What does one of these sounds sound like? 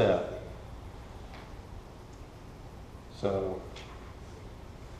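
A middle-aged man speaks slowly and calmly into a microphone in a room with a slight echo.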